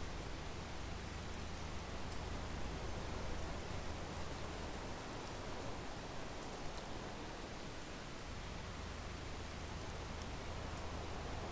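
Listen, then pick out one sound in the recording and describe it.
Grain pours from an unloading spout with a steady rushing hiss.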